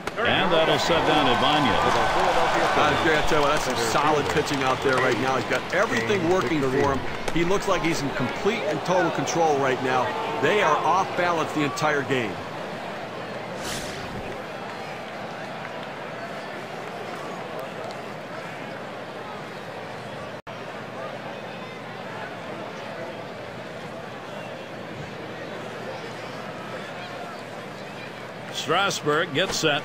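A large stadium crowd murmurs steadily in the background.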